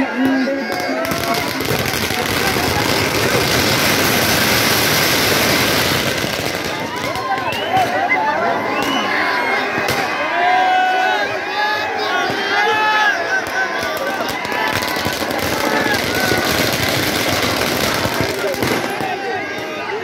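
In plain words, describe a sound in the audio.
Firecrackers crackle and pop rapidly.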